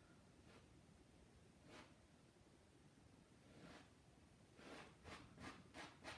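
A painting knife scrapes softly across a canvas.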